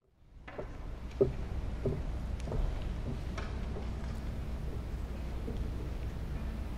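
An orchestra plays softly in a large echoing hall.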